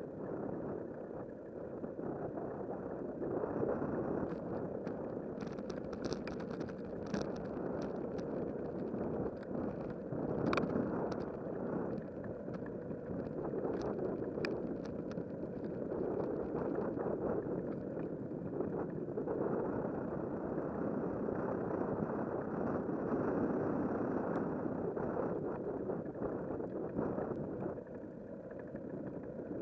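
Wind buffets the microphone steadily.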